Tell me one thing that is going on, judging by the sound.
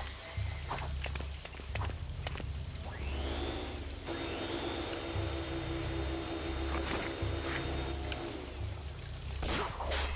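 A video game's short electronic chimes and clicks sound.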